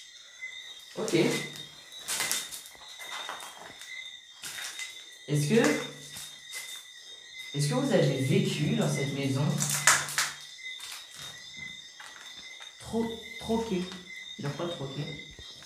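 A synthetic voice speaks in short bursts through a phone loudspeaker.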